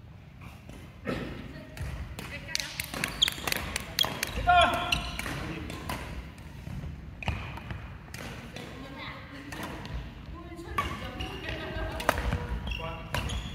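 Shuttlecocks are struck with sharp pops of badminton rackets.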